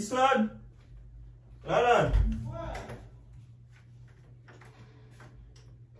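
Footsteps walk across a room.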